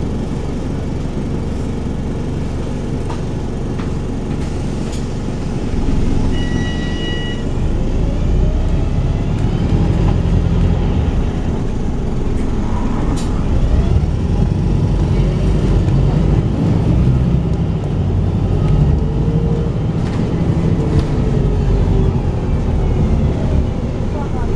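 An engine rumbles steadily from inside a moving bus.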